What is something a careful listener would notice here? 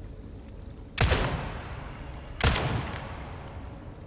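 A pistol fires two loud shots that ring out with a long echo.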